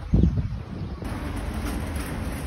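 A loaded cart rolls over pavement.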